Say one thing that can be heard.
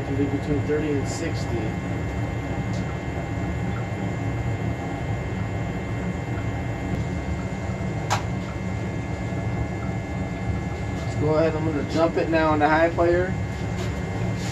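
A furnace runs with a steady low hum.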